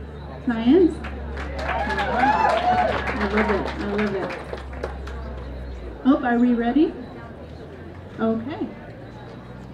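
A woman speaks into a microphone, heard through loudspeakers outdoors.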